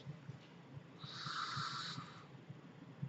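A man draws on an e-cigarette with a soft, sizzling hiss.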